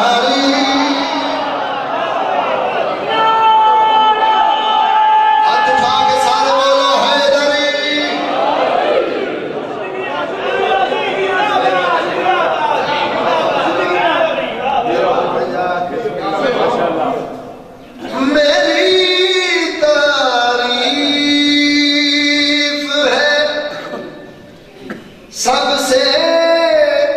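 A man recites loudly and with passion into a microphone, heard through loudspeakers in an echoing hall.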